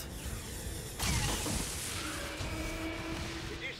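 An energy rifle fires with a loud crackling blast.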